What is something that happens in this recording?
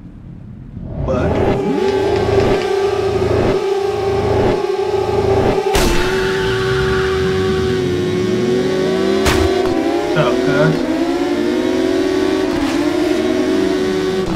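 Motorcycle engines rev and roar loudly, rising and falling in pitch.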